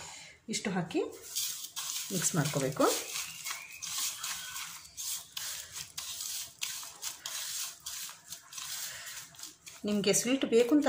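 Hands squish and knead wet dough in a bowl.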